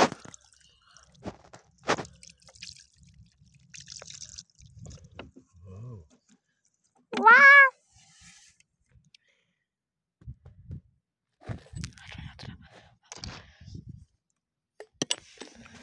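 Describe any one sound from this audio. Wet stones click and knock together in a hand.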